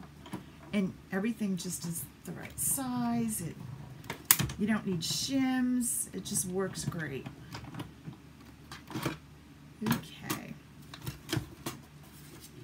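Card and paper rustle as they are handled.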